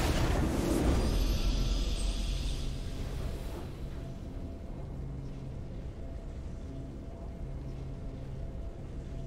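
A triumphant fanfare plays and then settles into soft sustained music.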